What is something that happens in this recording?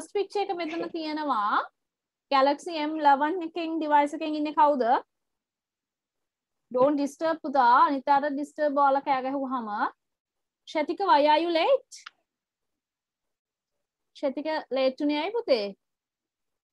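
A woman speaks clearly and steadily through an online call, with short pauses.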